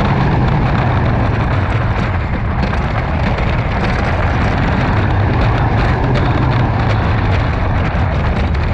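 Wind roars past at speed.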